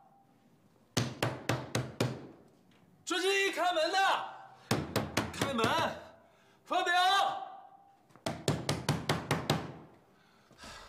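A fist pounds on a wooden door in rapid blows.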